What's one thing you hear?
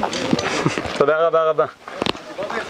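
A man speaks briefly nearby, outdoors.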